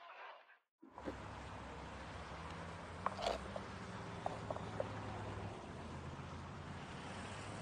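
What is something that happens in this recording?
High heels click on a stone pavement outdoors.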